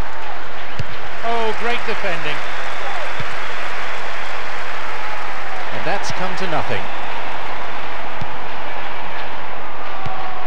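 A ball is kicked with dull thuds now and then.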